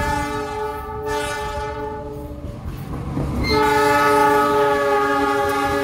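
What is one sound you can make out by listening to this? A diesel locomotive engine rumbles as it passes close by.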